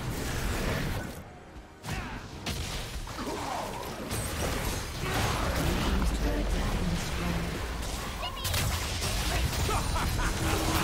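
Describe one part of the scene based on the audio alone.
Game spell effects and impacts crackle and boom in a busy fight.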